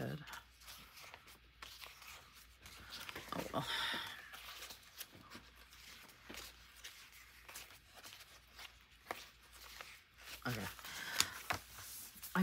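Sticker sheets rustle and crinkle as they are flipped through.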